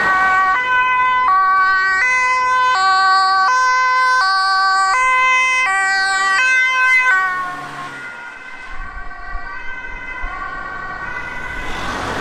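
An ambulance siren wails in a loud two-tone pattern, then fades into the distance.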